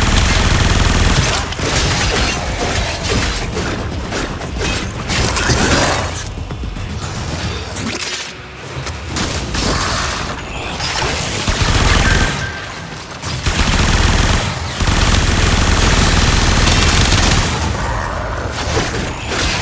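Gunfire and blasts crackle loudly in a game battle.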